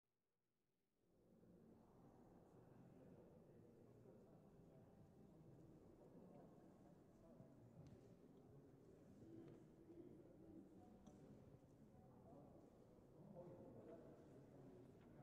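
A seated audience murmurs and chatters quietly in a large echoing hall.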